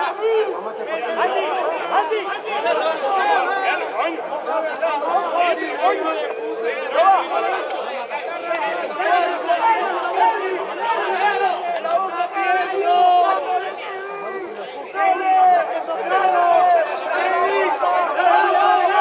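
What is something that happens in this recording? Young men shout to each other across an outdoor sports field.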